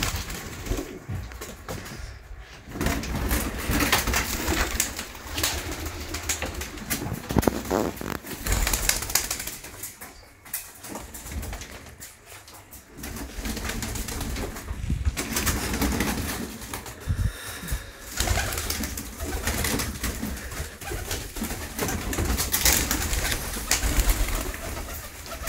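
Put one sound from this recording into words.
Pigeons coo throughout.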